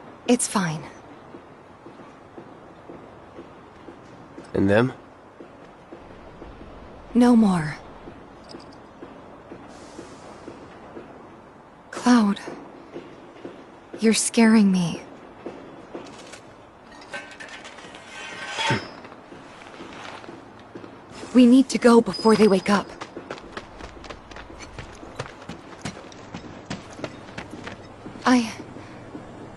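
A young woman speaks softly and gently.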